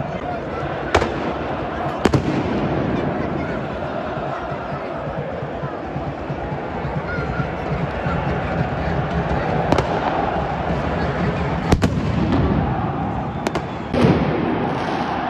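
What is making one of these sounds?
Firecrackers bang loudly.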